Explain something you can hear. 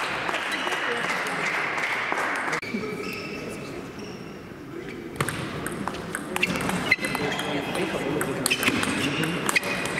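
A table tennis ball clicks back and forth off paddles and a table, echoing in a large hall.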